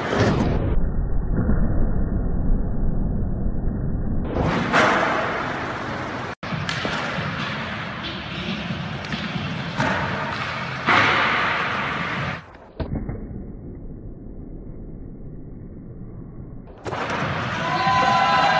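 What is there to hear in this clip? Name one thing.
A skateboard grinds along a ledge.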